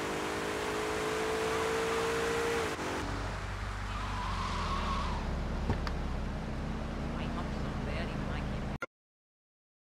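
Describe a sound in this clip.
A car engine hums as the car drives along a street.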